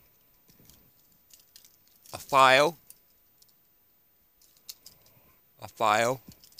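Keys jingle on a metal ring.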